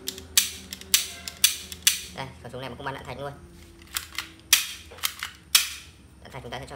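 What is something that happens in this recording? Hard plastic parts click and snap sharply.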